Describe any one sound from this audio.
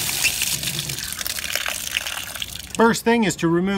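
Water gushes and splashes from an open pipe.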